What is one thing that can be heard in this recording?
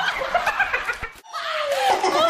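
Elderly women laugh loudly.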